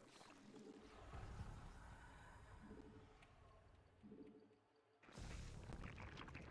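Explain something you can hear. Computer game sound effects rumble and crackle.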